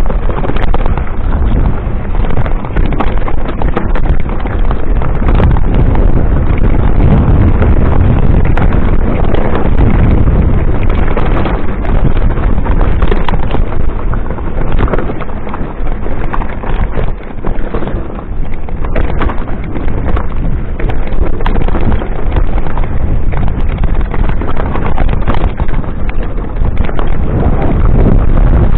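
Wind rushes past a moving cyclist.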